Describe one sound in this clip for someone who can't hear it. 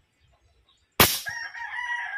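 A rifle fires a single sharp shot nearby.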